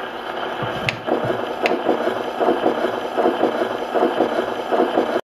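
A wind-up gramophone plays an old record with a scratchy, tinny sound.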